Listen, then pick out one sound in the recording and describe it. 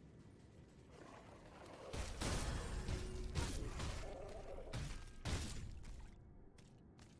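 Spells crackle and blast as creatures are fought.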